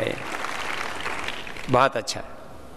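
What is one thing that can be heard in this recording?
A large crowd murmurs softly in an echoing hall.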